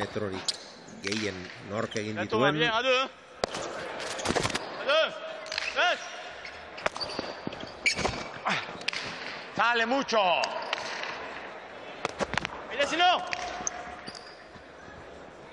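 A hard ball smacks sharply against a wall and floor, again and again, echoing in a large hall.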